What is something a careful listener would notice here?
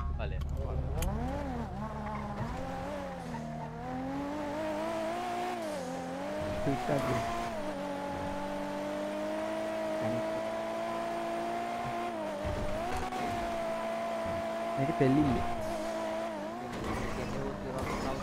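A car engine revs, then hums steadily as the car drives along, its pitch rising and dipping.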